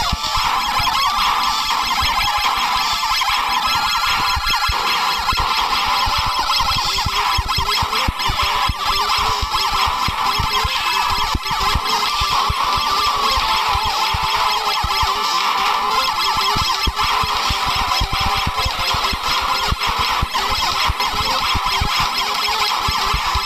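Video game cannon shots fire rapidly.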